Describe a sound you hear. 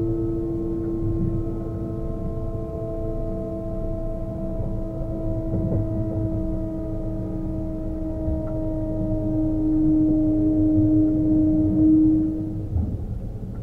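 An electric train's motors whine steadily, then fall silent.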